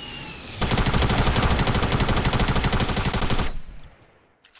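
Automatic gunfire rattles in a fast, steady burst.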